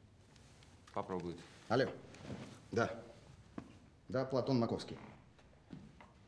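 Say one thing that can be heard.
A man talks into a phone.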